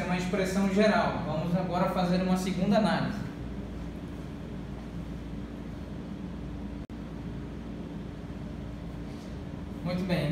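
A man lectures calmly, close by.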